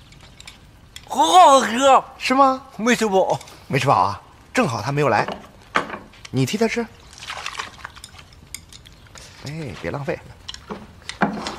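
Two men talk calmly at close range.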